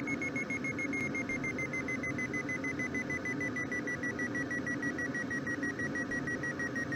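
A glider's variometer beeps rapidly, its pitch slowly falling.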